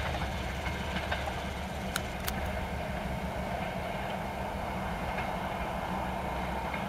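A train rumbles steadily into the distance along the tracks.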